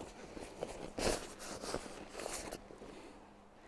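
Fabric rustles as a backpack is handled.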